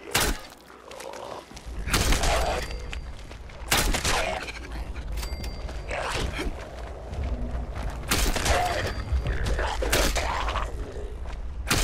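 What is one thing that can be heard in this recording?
Creatures snarl and growl hoarsely.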